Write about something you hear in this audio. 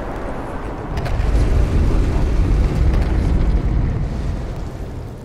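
A heavy stone pillar grinds and rumbles as it moves.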